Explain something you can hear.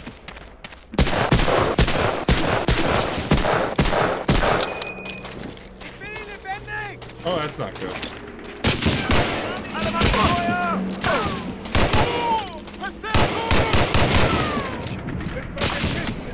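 Gunshots crack in rapid, repeated bursts.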